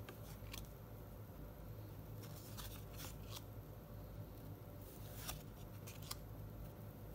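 Trading cards rustle and flick as a hand shuffles through a stack.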